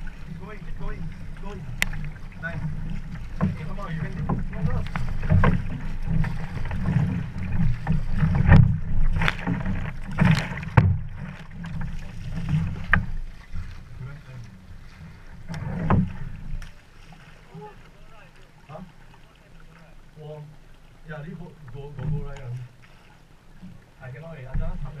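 Water laps and sloshes.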